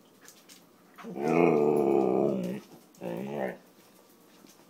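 A husky howls close by in two long, wavering calls.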